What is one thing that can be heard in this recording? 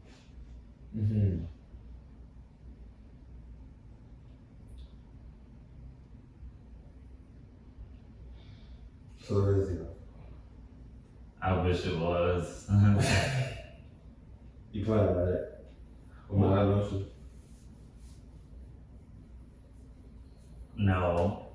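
Two young men talk calmly nearby in short bursts.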